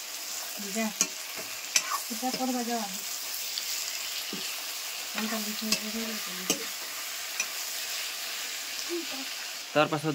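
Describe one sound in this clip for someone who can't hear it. A metal spatula scrapes and clinks against a wok.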